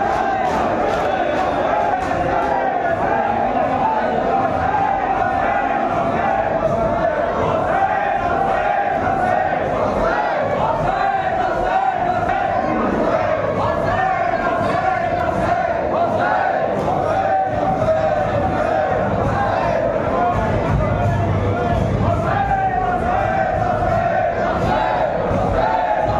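A large crowd of men chants loudly together in an echoing hall.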